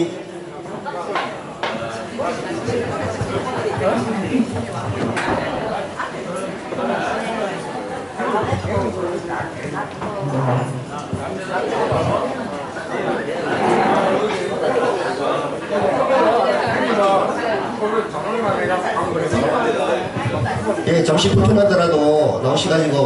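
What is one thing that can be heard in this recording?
A man sings into a microphone over a loudspeaker, in an echoing room.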